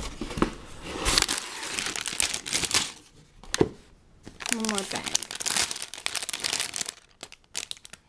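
A plastic bag of toy bricks crinkles and rustles in hands.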